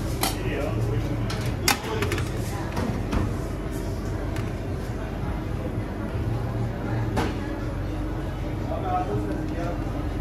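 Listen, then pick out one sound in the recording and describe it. Food is set down on a metal plate with light clinks.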